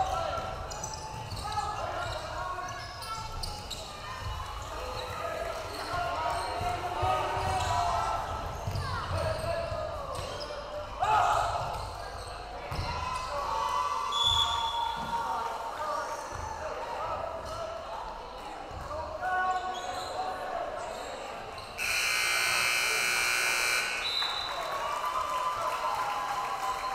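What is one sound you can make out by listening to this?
A crowd in a large echoing gym murmurs and cheers.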